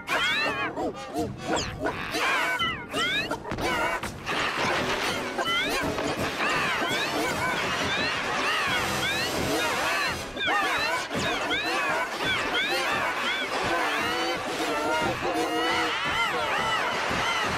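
A hen squawks and clucks excitedly, close by.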